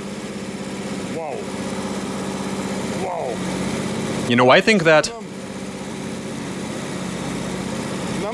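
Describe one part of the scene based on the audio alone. An engine idles with a steady, low hum.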